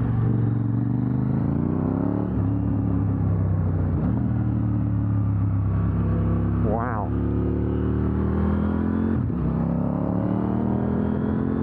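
A motorcycle engine roars close by, rising and falling in pitch as the rider shifts gears.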